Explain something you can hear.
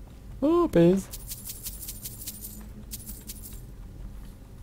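Gold coins clink and jingle as they are picked up.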